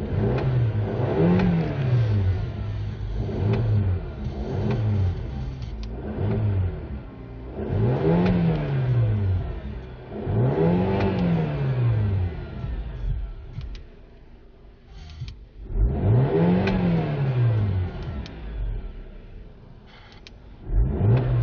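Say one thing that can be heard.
A car engine revs up sharply and drops back to idle, again and again.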